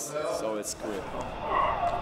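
A man speaks casually close by.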